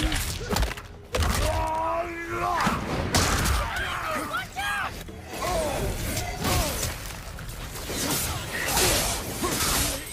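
An axe strikes heavy blows with sharp, meaty thuds.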